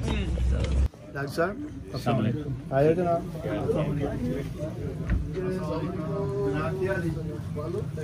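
Several men talk calmly nearby.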